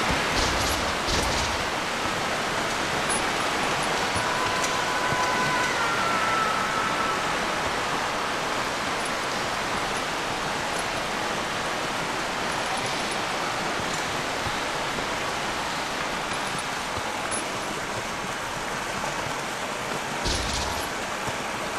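Water pours down steadily in a loud, rushing stream.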